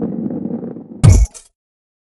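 A loud thud sounds as a ball lands.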